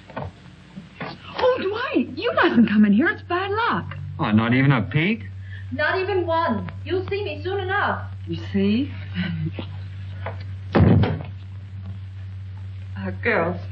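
Young women talk with animation.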